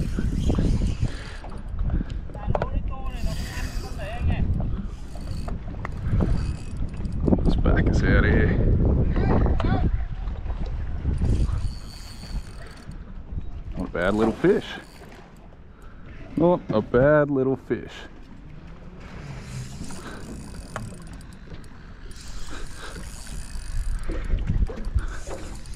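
A fishing reel whirs as its handle is wound.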